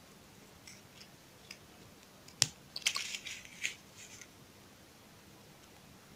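Scissors snip through plastic trim.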